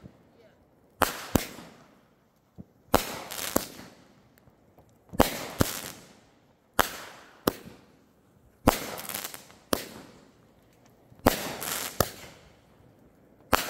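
Aerial firework shells burst one after another with sharp bangs that echo outdoors.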